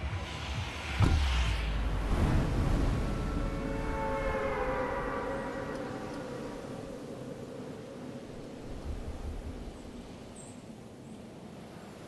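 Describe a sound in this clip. A jet pack roars steadily.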